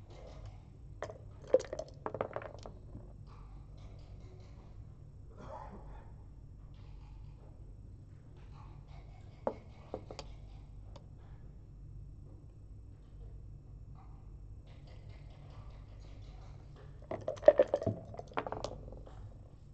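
Dice rattle and clatter onto a wooden board.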